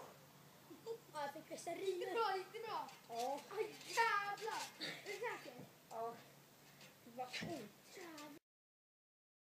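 Children shout and chatter nearby.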